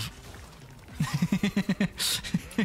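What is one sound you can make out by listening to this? A young man laughs in short bursts close to a microphone.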